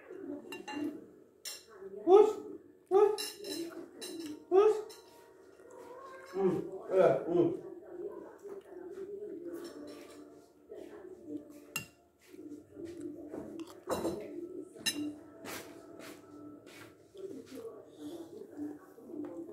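A spoon clinks against a plate.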